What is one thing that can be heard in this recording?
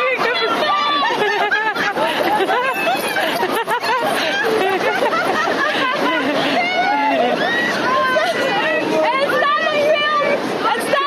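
Several young women chatter and laugh outdoors.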